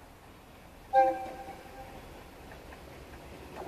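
A train horn blasts loudly and suddenly, then fades.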